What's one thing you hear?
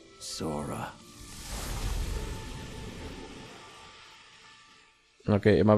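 A dark magical burst whooshes and slowly fades.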